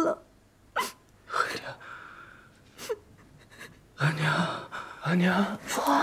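A young man moans weakly while lying down.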